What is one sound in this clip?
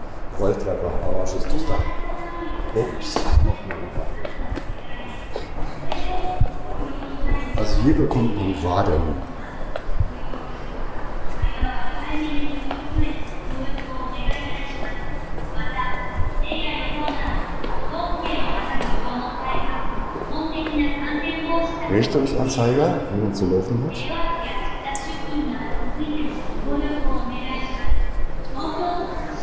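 Footsteps echo on hard stairs and a hard floor.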